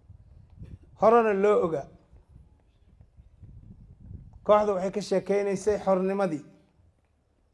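An elderly man speaks loudly into a microphone in long, drawn-out phrases.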